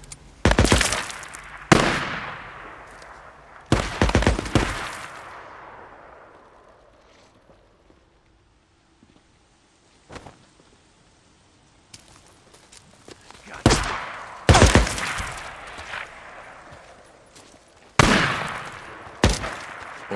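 Gunshots crack loudly and echo across open ground.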